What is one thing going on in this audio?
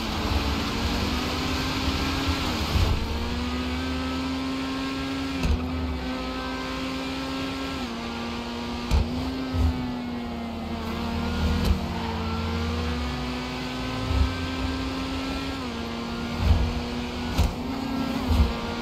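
A sports car engine roars steadily, shifting gears as it speeds along.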